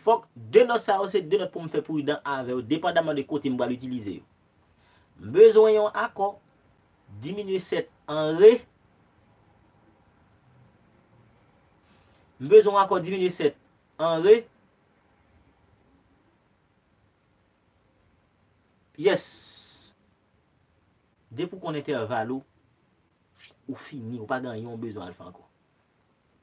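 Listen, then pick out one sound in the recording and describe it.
A young man talks calmly and close by, in short bursts with pauses.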